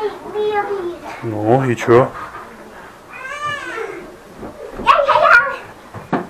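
A child's feet thump on a sofa cushion.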